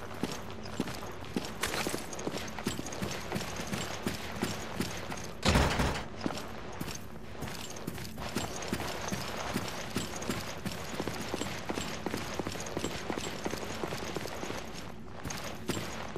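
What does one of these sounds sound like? Footsteps thud steadily on a hard floor.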